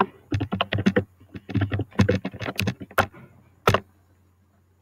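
A keyboard clatters with quick keystrokes.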